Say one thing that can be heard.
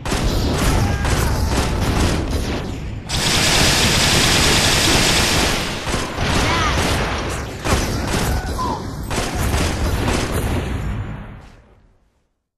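Pistol shots ring out in rapid bursts.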